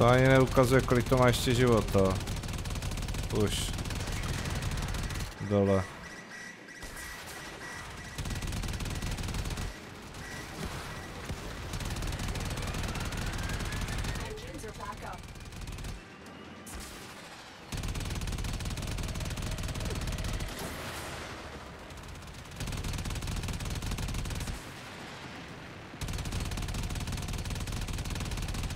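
Gunfire bursts rapidly and repeatedly.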